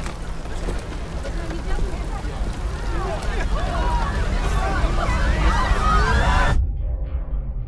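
A crowd bustles in a busy street.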